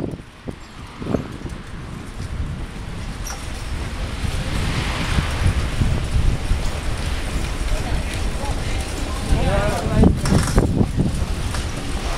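Bicycle tyres roll steadily on smooth pavement.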